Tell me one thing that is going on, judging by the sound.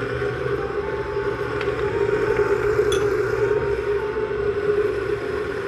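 A blender motor whirs steadily, churning its contents.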